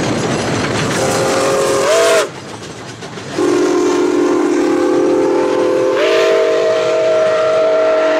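A train whistle blows in long, steady blasts.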